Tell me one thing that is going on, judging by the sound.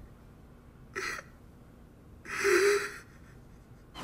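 A man sobs quietly.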